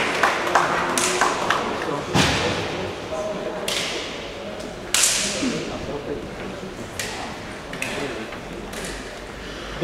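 A ball is kicked with sharp thuds that echo around a large hall.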